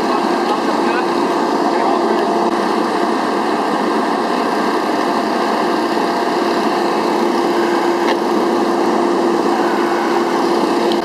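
A rescue tool whirs steadily.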